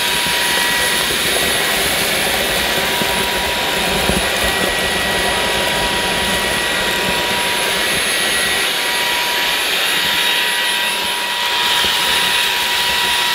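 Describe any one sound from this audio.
Small bits of debris rattle and crackle as they are sucked up.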